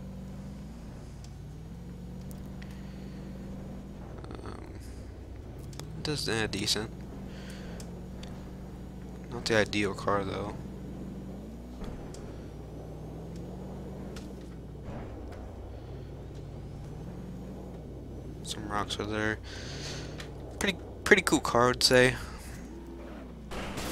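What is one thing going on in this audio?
A car engine hums steadily, rising and falling in pitch as it changes gear.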